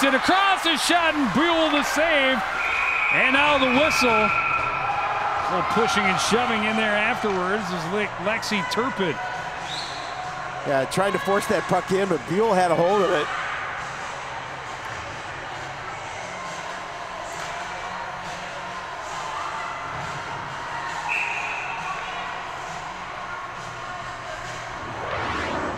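Skates scrape and hiss on ice.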